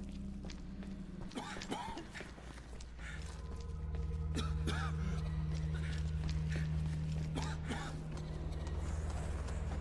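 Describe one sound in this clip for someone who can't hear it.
Footsteps crunch on a gritty floor.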